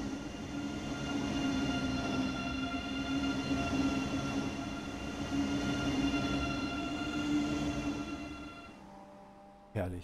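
A passing high-speed train roars and whines loudly, then fades away.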